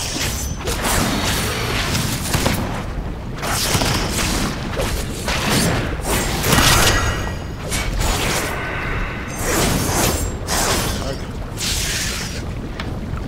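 Magic spells crackle and burst in quick bursts.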